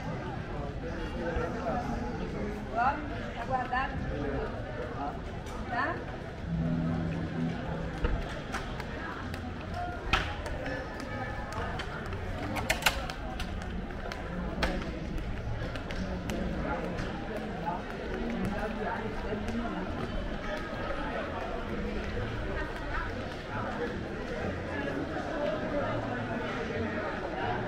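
Footsteps fall on cobblestones close by.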